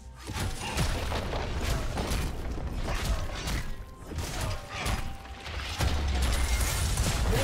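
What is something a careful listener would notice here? Magical blasts and hits crackle and burst in a busy video game battle.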